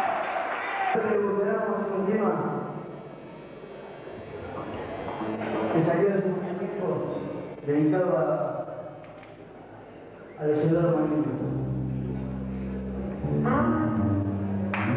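An electric guitar plays through an amplifier.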